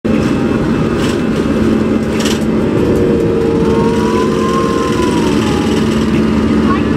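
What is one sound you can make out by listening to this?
Jet engines roar loudly and steadily from inside an aircraft cabin.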